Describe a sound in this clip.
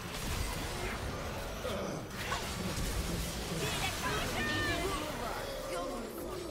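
Game spell effects crackle and burst in quick succession.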